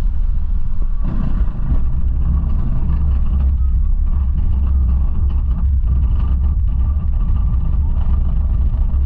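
A coaster lift chain clanks steadily as the train climbs.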